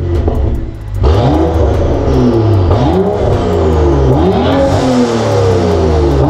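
A car's exhaust roars as the engine revs up and down repeatedly.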